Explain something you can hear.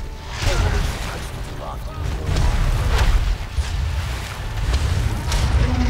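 Soldiers clash in battle with thuds and metallic hits.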